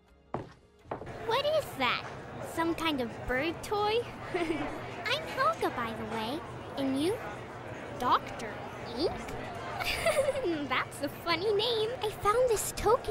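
A young girl speaks with animation, close to the microphone.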